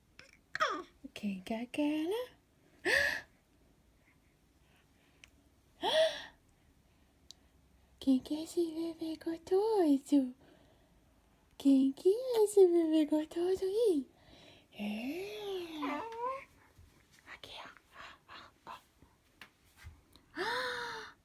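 A young woman talks close by in a playful, singsong voice.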